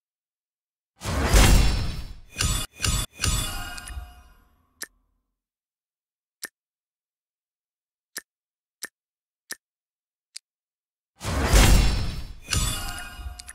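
A magical chime and whoosh bursts out as an upgrade takes effect.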